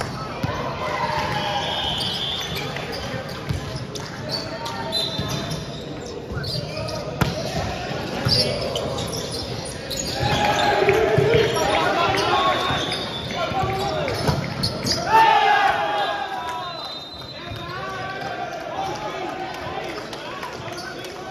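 Many young men and women chatter and call out, echoing in a large hall.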